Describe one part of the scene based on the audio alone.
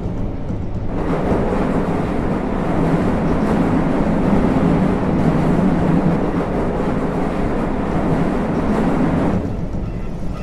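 A train's motor whines louder for a while, then drops back.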